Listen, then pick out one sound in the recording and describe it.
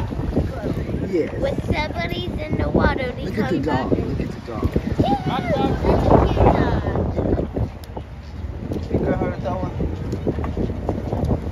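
Several adults talk with each other nearby as they walk.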